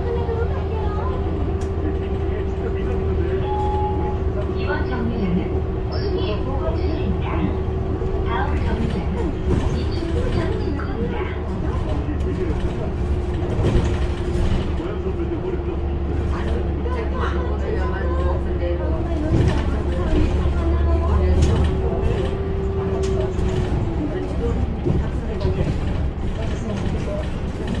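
Loose fittings rattle and knock inside a moving bus.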